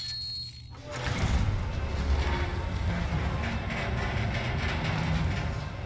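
A heavy metal shutter rumbles as it rises.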